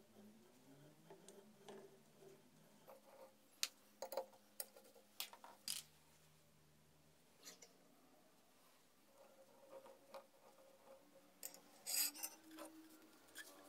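Metal tools click and clink against a steel pipe.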